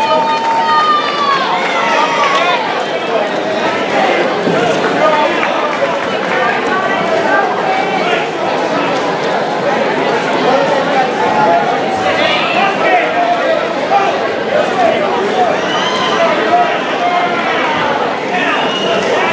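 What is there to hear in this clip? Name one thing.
A crowd of spectators shouts and cheers throughout in an echoing hall.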